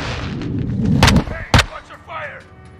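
Rifle shots crack sharply, close by.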